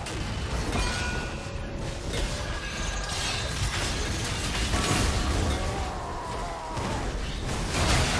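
Magic spells whoosh and blast in a fantasy battle game.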